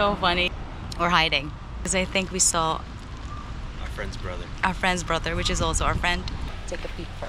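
A woman talks with animation close by, outdoors in wind.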